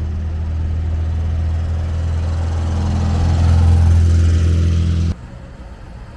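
An air-cooled Volkswagen Beetle drives past.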